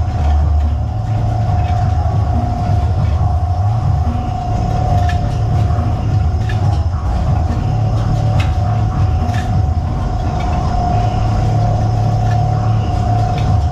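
Machinery hums and rumbles steadily with a high whine.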